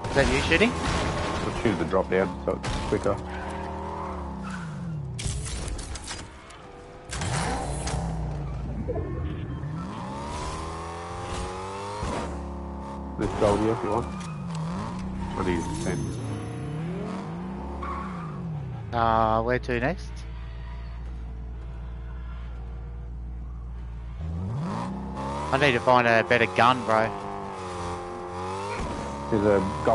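A car engine revs up and down as it drives.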